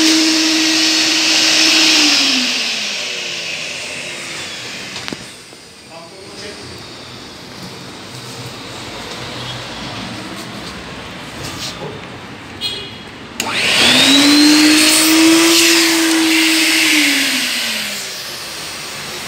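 A vacuum cleaner motor roars, then winds down.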